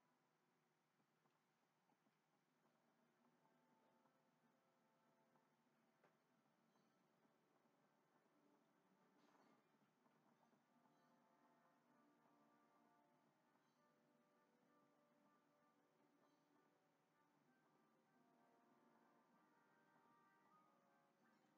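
Gentle melodic music plays through a television speaker.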